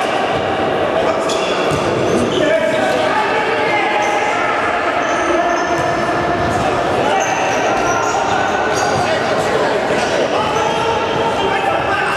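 Sports shoes squeak sharply on the floor.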